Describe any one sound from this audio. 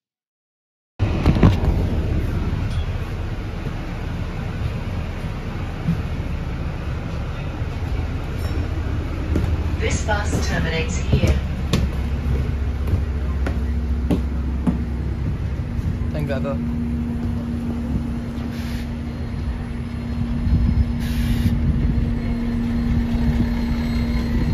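A bus engine rumbles steadily nearby.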